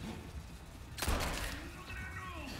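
A pistol fires a single loud shot.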